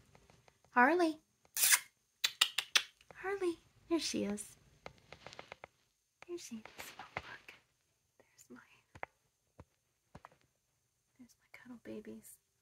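A woman speaks softly and sweetly close by.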